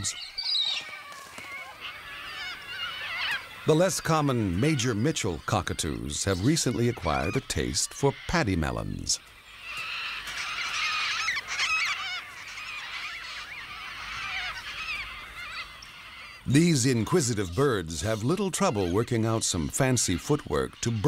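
A flock of cockatoos screeches and chatters.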